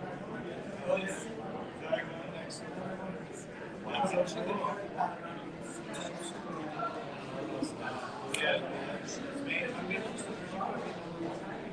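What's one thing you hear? Several men talk over each other in a room full of voices.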